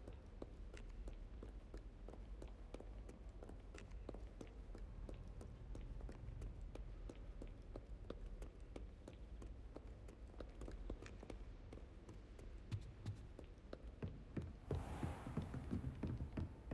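Footsteps tap quickly on stone stairs and floors.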